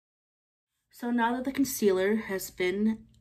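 A young woman speaks close to a microphone with animation.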